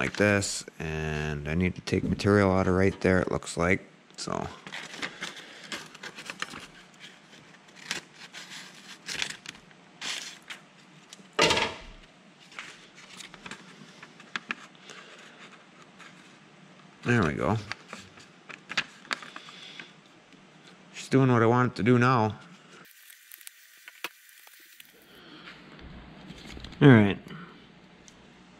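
Paper rustles and crinkles in hands.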